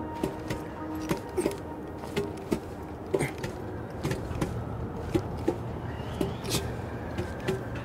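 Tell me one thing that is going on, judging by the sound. Hands grab along a metal ledge with soft, regular clanks.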